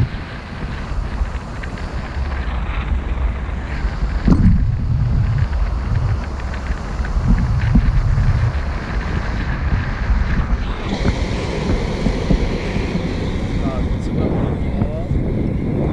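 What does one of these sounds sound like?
Wind rushes and buffets loudly against a microphone outdoors.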